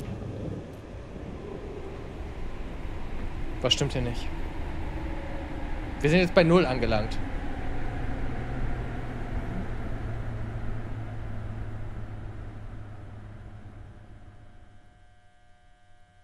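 A train rumbles steadily along and slowly fades.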